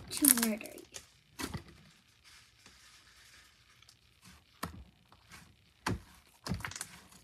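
Sticky slime squelches and pops as small hands knead and stretch it.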